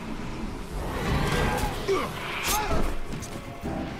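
A creature snarls and roars.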